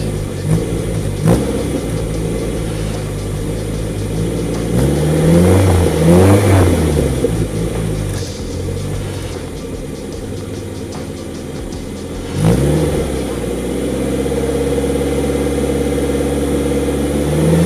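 A small car engine idles with a steady, low rumble from the exhaust.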